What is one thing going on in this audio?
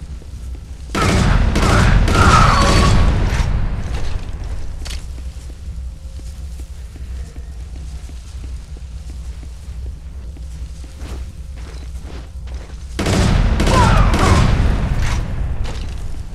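A rifle fires loud, booming shots that echo and rumble away.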